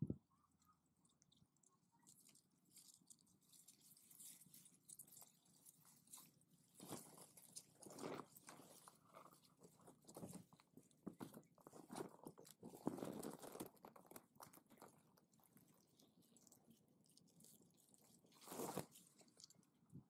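Grass stalks rustle and swish as a hand pushes through them.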